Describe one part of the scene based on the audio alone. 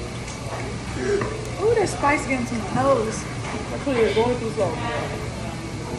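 A young woman speaks casually, close by.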